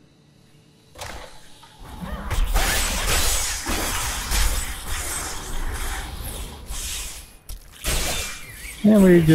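Spells crackle and blast in a loud fight.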